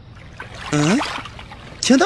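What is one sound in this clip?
Water gurgles as a bottle is dipped into a stream.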